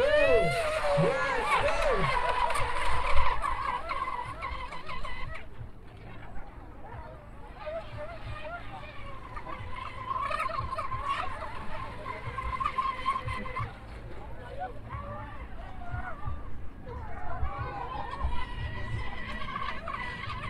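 Small model boat motors whine loudly, rising and falling in pitch as the boats race across the water.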